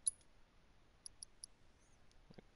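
Soft electronic menu clicks tick in quick succession.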